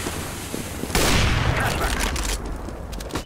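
A sniper rifle fires a loud, sharp shot.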